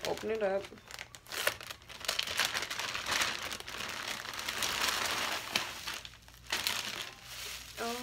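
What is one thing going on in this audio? A plastic bag crinkles and rustles loudly.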